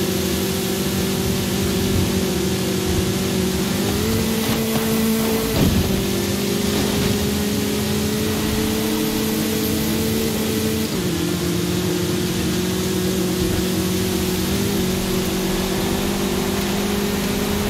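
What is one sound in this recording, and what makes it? A buggy engine drones loudly at high revs, shifting pitch with gear changes.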